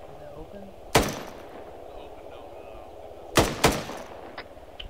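A rifle fires sharp shots that crack and echo.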